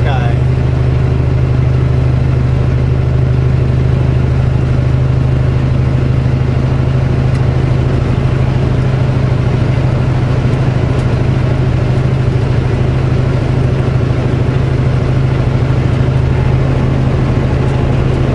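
Tyres roar on the highway.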